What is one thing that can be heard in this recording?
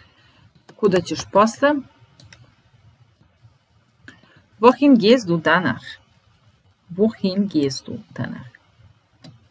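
A young woman speaks calmly and clearly into a microphone, in short phrases with pauses.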